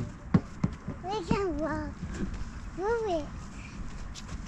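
A small child babbles and squeals.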